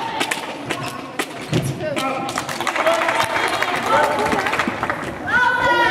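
Sneakers squeak on a hard floor in a large echoing hall.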